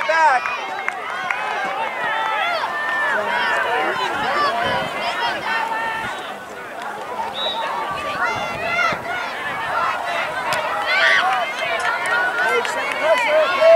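Adult spectators cheer and call out from the sideline.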